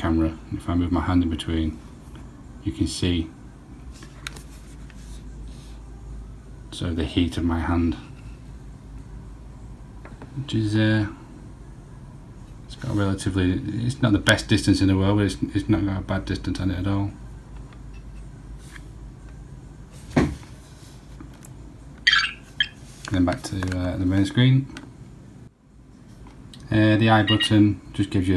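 An electronic gadget gives out bursts of beeping, warbling tones.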